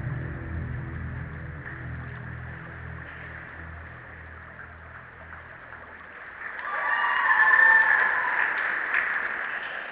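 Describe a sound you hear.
A crowd murmurs quietly in a large echoing hall.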